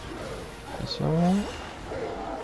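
A giant monster growls loudly.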